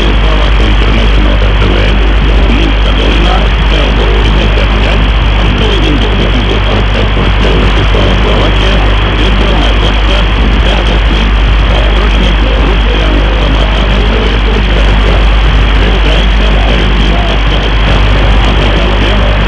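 A radio receiver plays a steady, noisy and crackling signal with a low hum.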